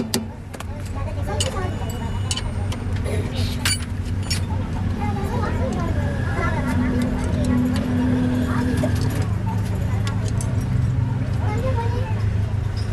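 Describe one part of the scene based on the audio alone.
Metal tools clink and scrape against a truck axle.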